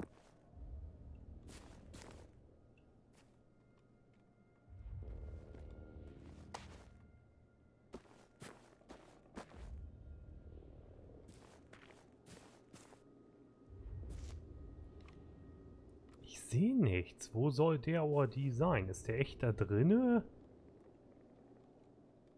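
Footsteps tread through grass.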